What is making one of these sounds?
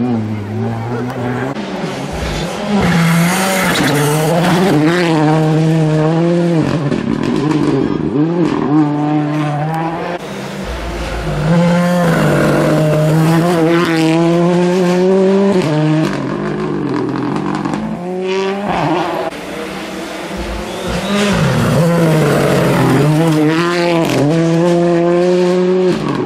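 Rally car engines roar and rev hard as they pass close by one after another.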